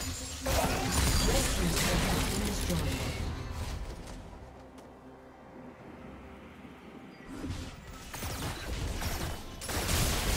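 Magic blasts and clashing strikes crackle in a fast-paced fight.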